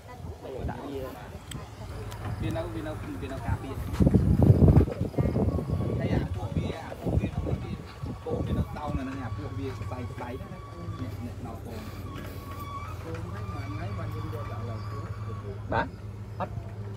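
A group of men talk with one another nearby.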